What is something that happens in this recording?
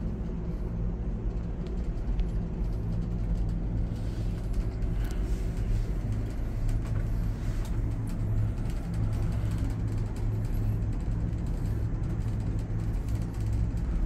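A cable car cabin hums and rumbles steadily.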